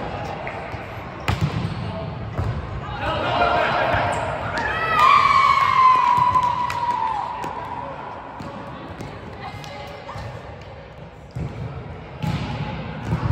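A volleyball is hit with sharp slaps in a large echoing hall.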